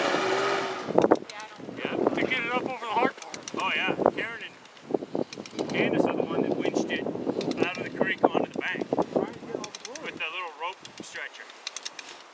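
Men talk to each other nearby outdoors.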